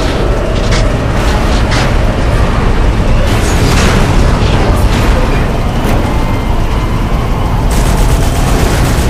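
Gunfire and explosions bang in short bursts.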